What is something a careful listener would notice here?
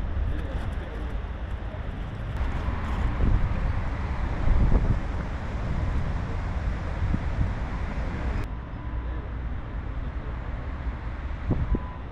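Wind blows and rumbles outdoors in gusts.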